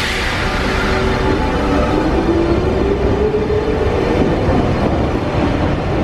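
A train's electric motor whines, rising in pitch as it speeds up.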